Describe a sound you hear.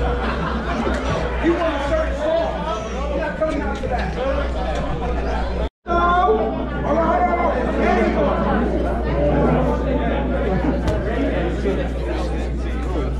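A crowd of people chatters loudly in a large echoing hall.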